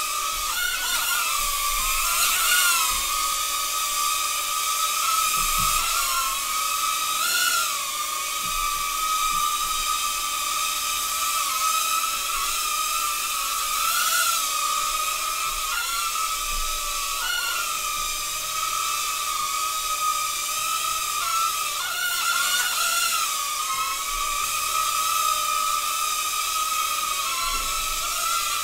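A tiny drone buzzes with a steady high whine that wavers in pitch as it hovers and darts about.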